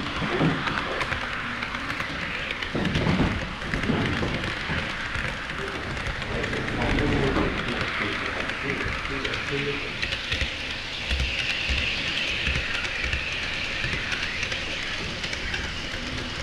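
Model trains rumble and clatter over rail joints close by.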